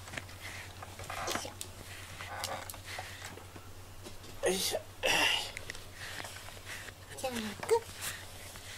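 A brush rubs briskly through a cat's fur.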